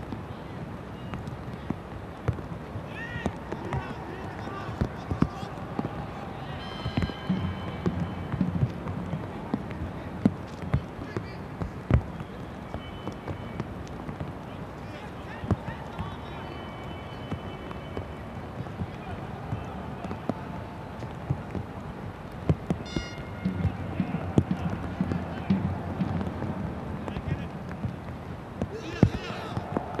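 A stadium crowd murmurs and cheers steadily in the distance.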